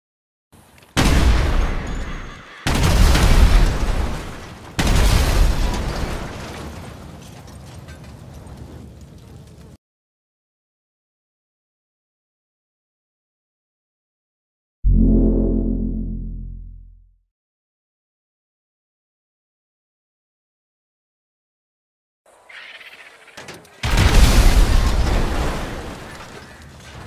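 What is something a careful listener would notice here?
Loud explosions boom and rumble one after another.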